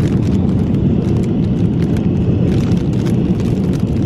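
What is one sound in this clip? A crisp packet crinkles and rustles close by.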